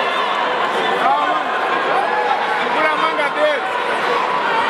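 Spectators shout encouragement loudly.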